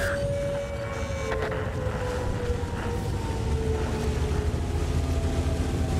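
Tank tracks clank and grind over the ground.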